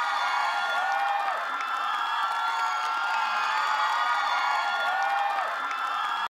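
Young men sing through headset microphones.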